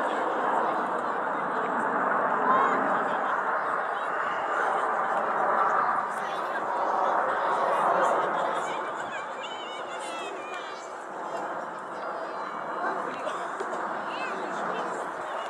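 Jet engines roar steadily overhead as a formation of planes flies past.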